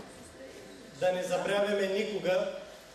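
A young woman reads aloud through a microphone in a large hall.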